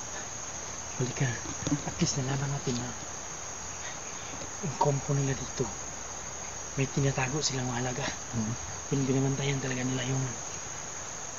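A man speaks quietly close by, in short bursts.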